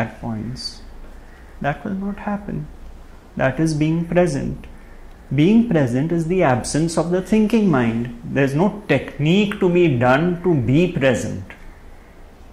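A man speaks calmly and with animation close to a microphone.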